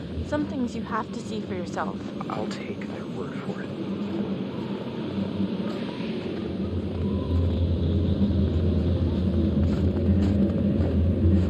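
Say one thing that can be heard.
Footsteps crunch slowly on snow.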